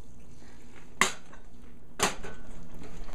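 A glass jug clinks down on a stove top.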